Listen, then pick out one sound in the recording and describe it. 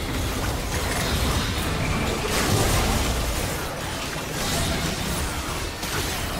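Game spell effects whoosh and crackle in a fight.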